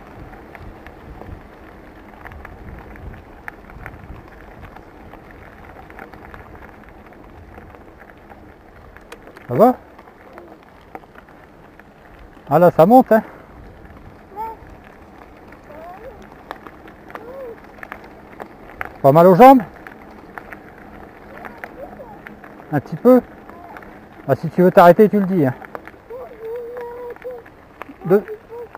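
Bicycle tyres roll over a wet gravel track.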